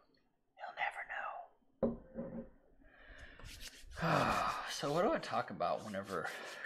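Liquid pours from a bottle into a glass.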